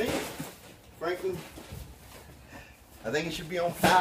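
A cardboard box rustles and thumps as it is handled.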